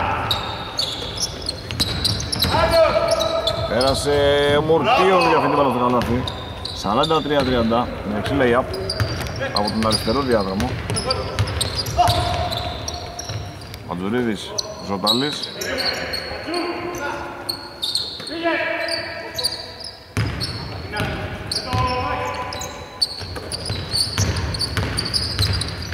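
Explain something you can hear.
A basketball thuds as it bounces on the court.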